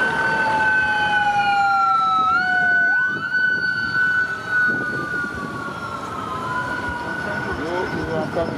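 A siren wails and wavers close by.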